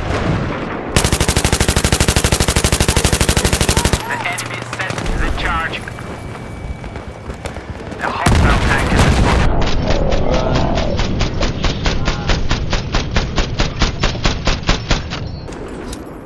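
A heavy machine gun fires fast, steady bursts.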